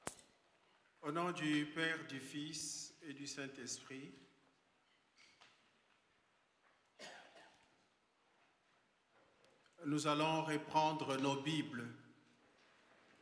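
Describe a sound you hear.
A man speaks slowly and solemnly into a microphone, in bursts with pauses.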